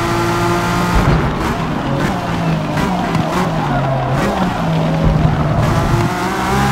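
Tyres screech as a car slides through a tight corner.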